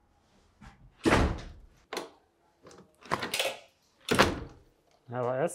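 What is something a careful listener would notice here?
A door handle clicks and rattles as it turns.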